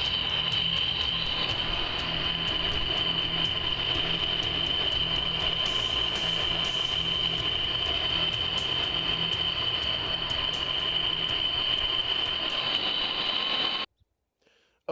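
A blowtorch roars steadily with a high hiss.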